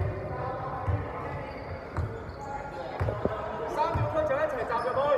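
A basketball bounces with dull thumps on a wooden floor in an echoing hall.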